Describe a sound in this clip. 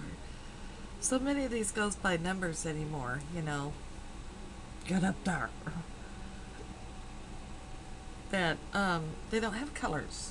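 A middle-aged woman talks casually into a nearby microphone, in short bursts.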